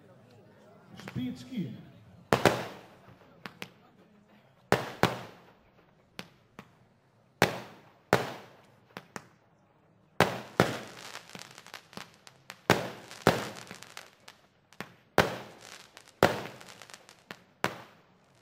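Fireworks rockets whistle as they shoot upward.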